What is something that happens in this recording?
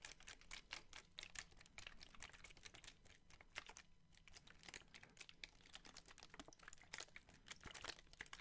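Plastic water bottles crinkle and crackle close to a microphone.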